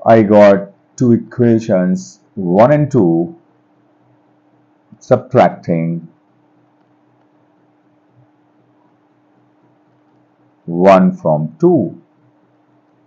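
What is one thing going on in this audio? A man speaks calmly into a close microphone, explaining in short phrases with pauses.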